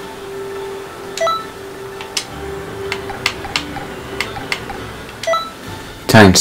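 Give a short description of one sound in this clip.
Short electronic menu blips sound now and then.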